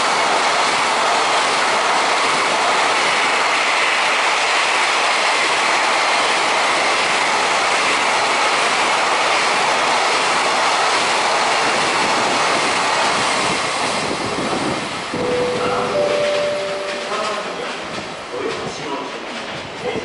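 A long freight train rumbles and rattles past close by, then fades a little.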